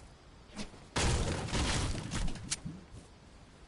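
A pickaxe strikes hard with loud thuds.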